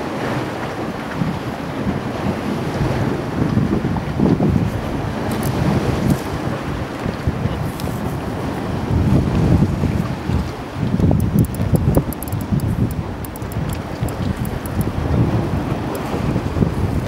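Wind rumbles and buffets outdoors across open water.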